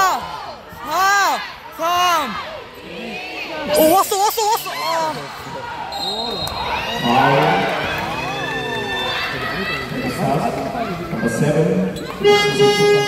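Sneakers squeak sharply on a wooden court in a large echoing arena.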